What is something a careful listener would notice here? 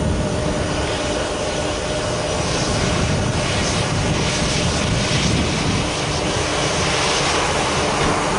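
A jet airliner's engines whine and roar steadily as it taxis close by.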